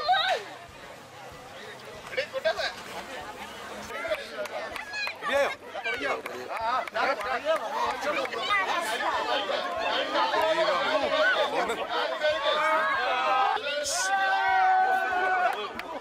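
Men and boys cheer and call out loudly close by.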